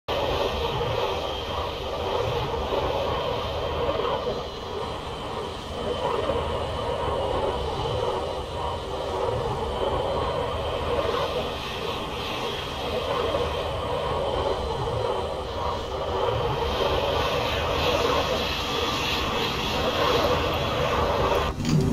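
A jet engine idles with a steady whine.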